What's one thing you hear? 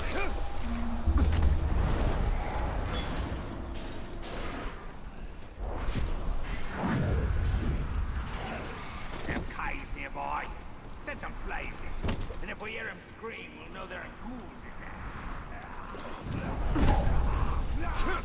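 Heavy thuds sound as a figure lands from jumps.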